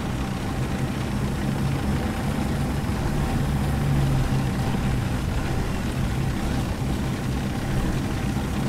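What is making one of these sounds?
Tank tracks clatter along a street.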